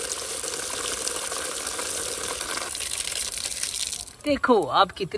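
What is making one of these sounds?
Water sprays and splashes onto plastic toys.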